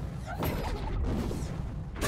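A fiery spell crackles and bursts.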